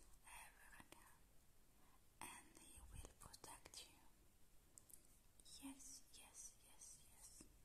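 A young woman whispers softly and very close to the microphone.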